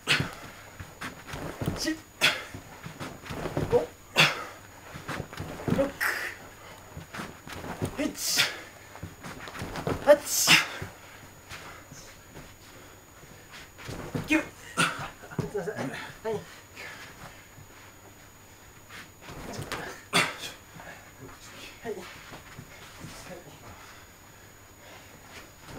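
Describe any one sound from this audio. Heavy cloth jackets rustle and snap as two men grapple.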